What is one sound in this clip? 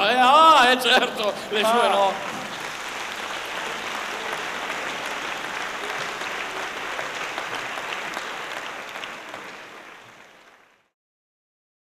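An audience applauds and cheers in a large hall, then the applause fades away.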